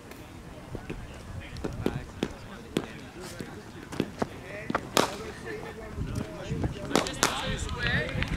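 Cricket bats crack sharply against balls several times, outdoors.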